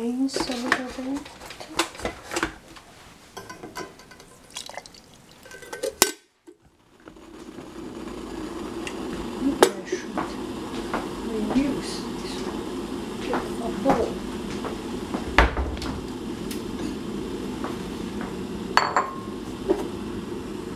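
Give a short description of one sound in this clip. A metal lid clinks and taps against a steel pot.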